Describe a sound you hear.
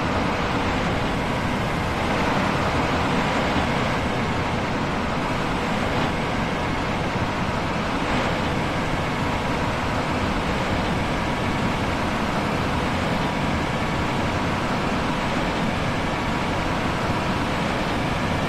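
An electric locomotive motor hums steadily.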